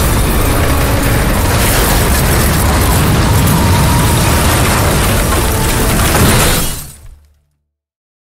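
A tornado roars with loud howling wind.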